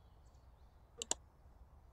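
A game menu button gives a short click.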